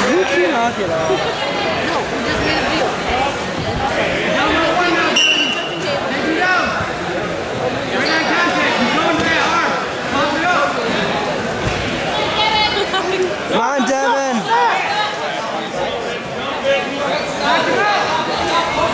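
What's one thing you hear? A man shouts encouragement loudly nearby.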